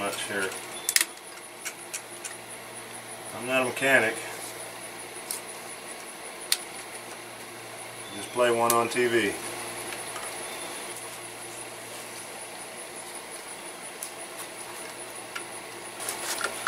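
A wrench clicks against metal now and then.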